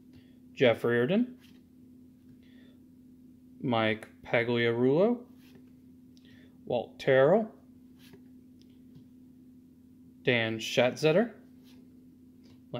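Trading cards rustle softly as they are flipped by hand.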